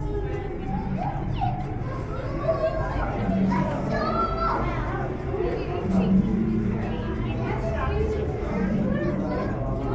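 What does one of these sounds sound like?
A crowd of men and women talk nearby in a large echoing hall.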